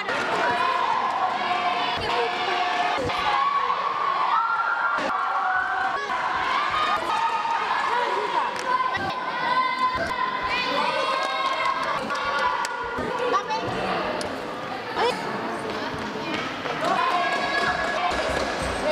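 Children's voices chatter and shout throughout a large echoing hall.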